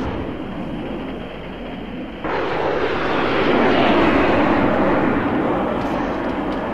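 A jet engine roars overhead, growing louder.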